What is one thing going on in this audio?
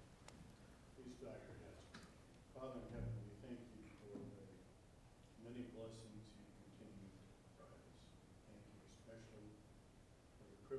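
A man speaks slowly into a microphone in a large echoing hall.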